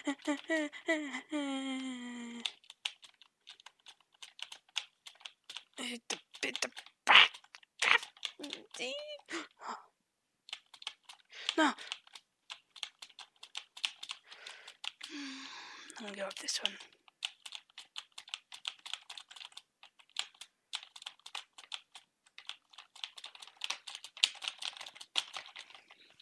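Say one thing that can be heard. Quick wet slapping sound effects patter rapidly as a small game character runs and jumps.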